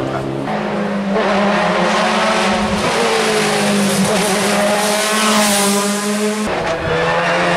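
A race car's engine screams at high revs as the car climbs the road.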